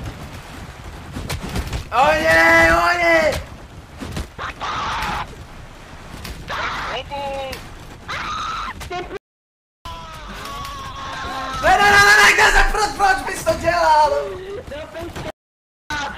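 A young man talks and shouts excitedly into a close microphone.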